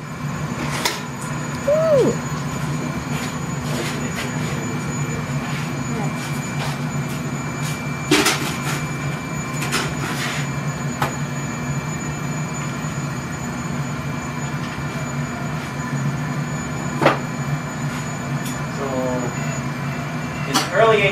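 A furnace roars steadily in the background.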